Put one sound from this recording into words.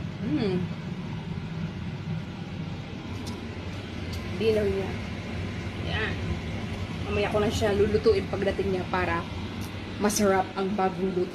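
A woman speaks close to the microphone with animation.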